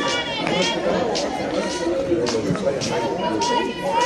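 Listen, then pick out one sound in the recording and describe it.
A softball pops into a catcher's mitt.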